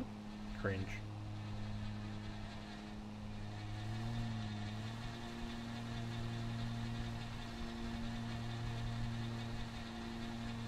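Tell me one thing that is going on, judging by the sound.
A small mower engine hums steadily, its pitch wavering slightly.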